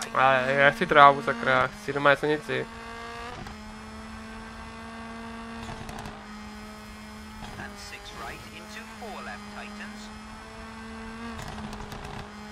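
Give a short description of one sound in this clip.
A rally car engine drones steadily at high revs.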